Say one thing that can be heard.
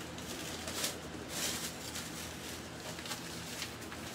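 A plastic bag rustles and crinkles close by.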